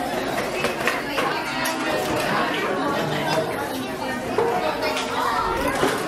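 Serving spoons clink against pots and dishes.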